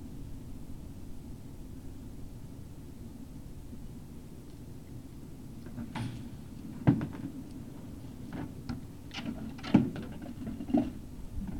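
Puppies scuffle and rustle through dry pine needles.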